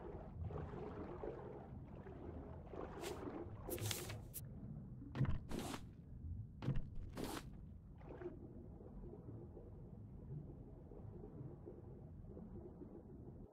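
A low underwater rumble murmurs steadily.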